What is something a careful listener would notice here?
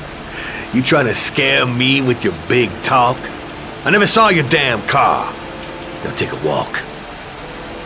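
A man speaks tensely and close by.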